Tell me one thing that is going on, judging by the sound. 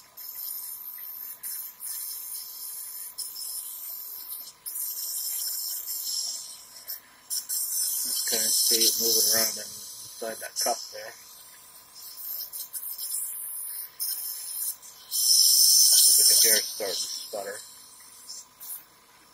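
A man breathes in and out through a nebulizer mouthpiece with a hissing of mist.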